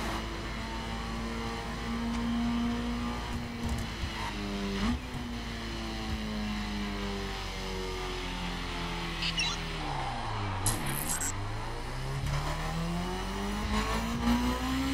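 A motorcycle engine hums steadily, its pitch slowly falling as it slows and then rising again as it speeds up.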